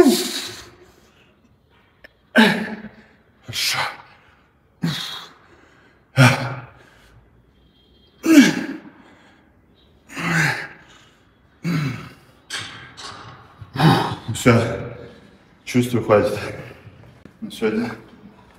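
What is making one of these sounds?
A young man grunts and shouts in strained bursts close to a microphone.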